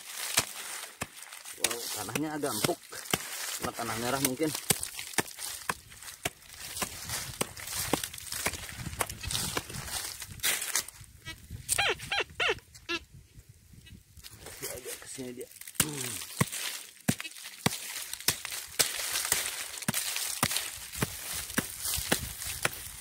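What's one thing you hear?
A pick chops into dry soil with repeated dull thuds.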